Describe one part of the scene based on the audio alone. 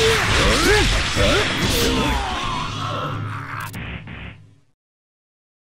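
Game combat effects crash and whoosh in rapid succession.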